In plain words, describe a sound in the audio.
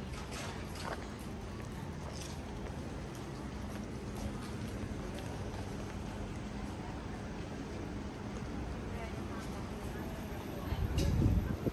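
Footsteps tap on pavement close by.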